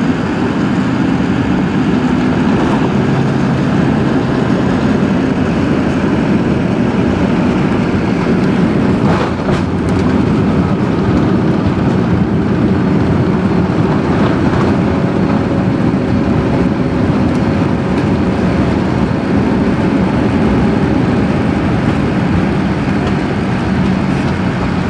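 An aircraft rumbles and rattles as it rolls fast along a runway.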